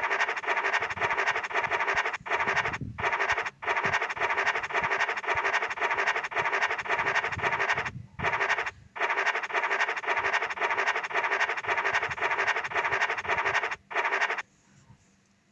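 A scratch card is scraped rapidly with a steady rasping.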